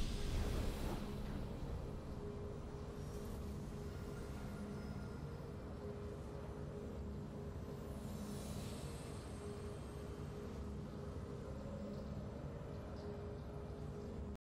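Soft game music plays on steadily.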